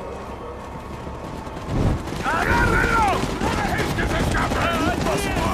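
Torch flames crackle and roar.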